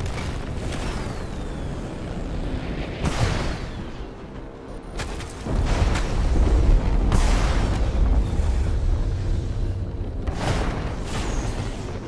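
Energy blasts fire in sharp bursts.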